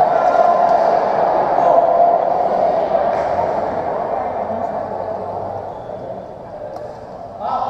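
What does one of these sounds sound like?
Badminton rackets strike a shuttlecock in an echoing indoor hall.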